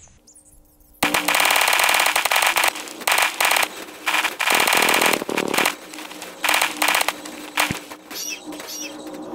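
Cars crash and clatter loudly in rapid bursts.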